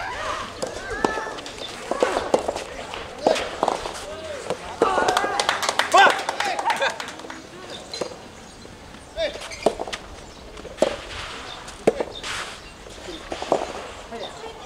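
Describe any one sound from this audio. A tennis ball is struck sharply back and forth with rackets outdoors.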